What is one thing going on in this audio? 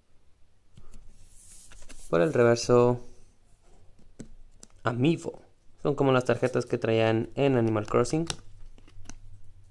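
A plastic card is flipped over in the hands.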